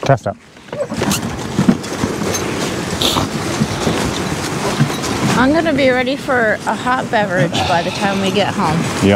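Sled runners hiss and scrape over snow.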